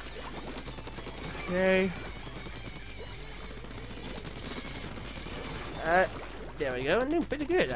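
Paint guns fire in rapid bursts and ink splatters wetly.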